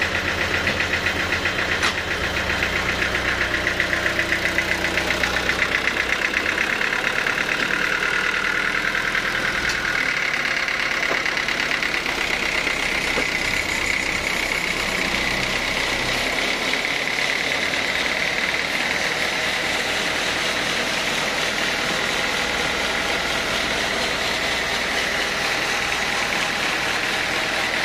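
A band saw whines steadily.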